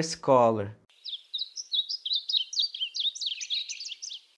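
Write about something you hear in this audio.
A small bird sings a rapid, high warbling song.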